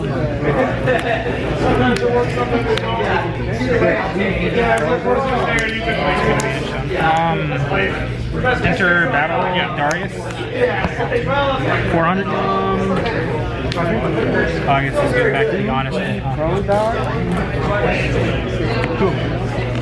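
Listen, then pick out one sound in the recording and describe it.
Playing cards are slid and tapped onto a mat.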